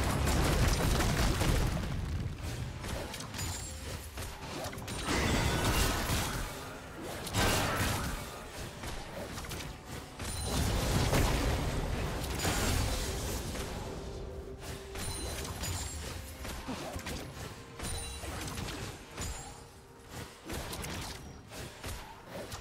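Game weapons clash and strike repeatedly.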